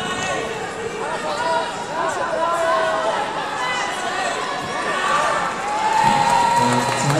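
Many voices of spectators shout and call out in a large echoing hall.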